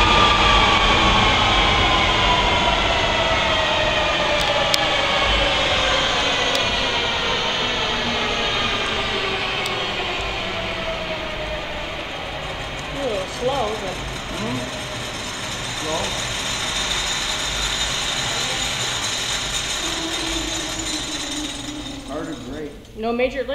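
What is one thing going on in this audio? A jet engine roars loudly and its high whine slowly winds down.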